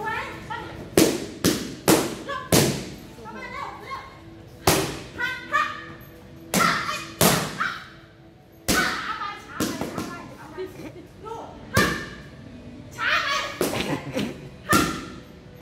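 A boy kicks and punches padded targets with sharp slaps.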